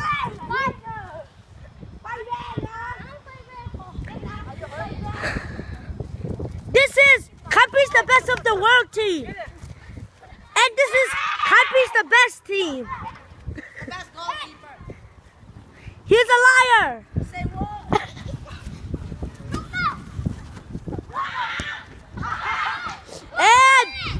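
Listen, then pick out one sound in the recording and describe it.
Boys shout and call out excitedly outdoors.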